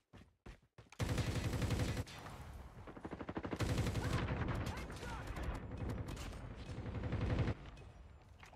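A gun fires rapid bursts loudly.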